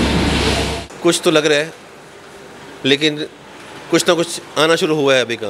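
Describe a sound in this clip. A middle-aged man speaks calmly into a microphone close by.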